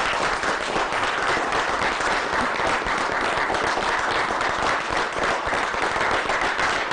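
A crowd applauds steadily nearby.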